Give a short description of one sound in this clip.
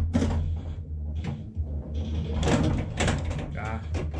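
A pinball flipper snaps up with a thump.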